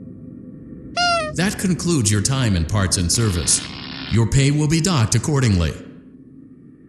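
An animatronic creature lets out a loud, harsh, distorted screech.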